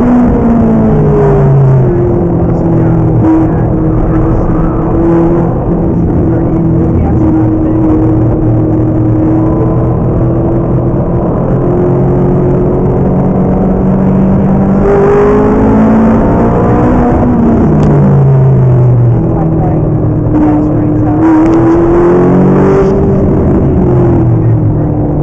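A sports car engine roars loudly from inside the cabin, rising and falling in pitch as it shifts gears.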